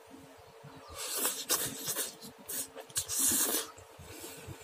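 A man slurps noodles loudly up close.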